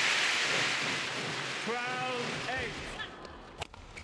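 A crowd cheers loudly in a large hall, then fades.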